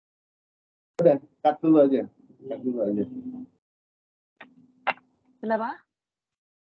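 A man sings over an online call.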